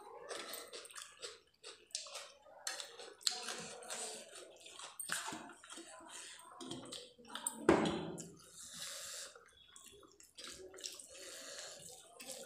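Fingers squish and mix rice on a metal plate.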